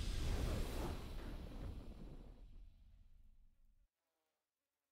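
A triumphant game fanfare booms and fades away.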